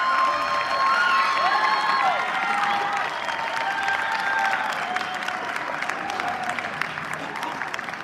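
An audience cheers and whistles.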